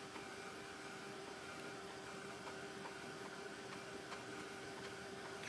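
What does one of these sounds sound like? A heat gun blows with a steady, high whirring hum.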